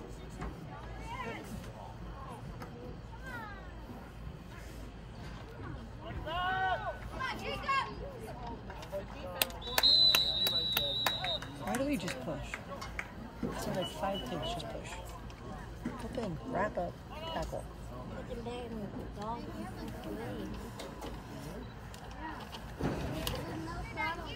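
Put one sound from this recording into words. Boys and men shout and call out outdoors.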